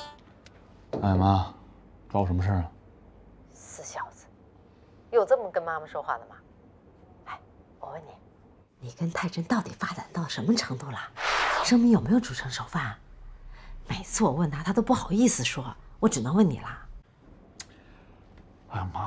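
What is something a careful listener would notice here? A young man speaks on a phone, calm at first, then whining.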